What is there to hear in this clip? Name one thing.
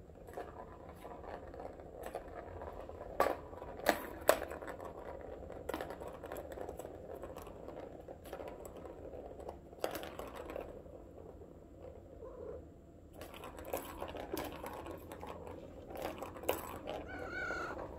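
A cat paws at a plastic toy with soft taps.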